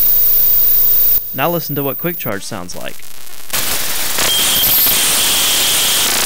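A small plug clicks into a socket.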